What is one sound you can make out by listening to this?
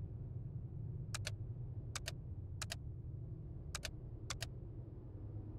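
Keypad buttons click one after another.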